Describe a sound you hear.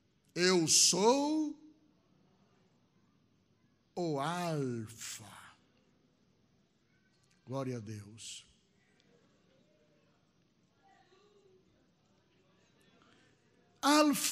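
A middle-aged man preaches loudly and with passion through a microphone, in bursts with pauses between.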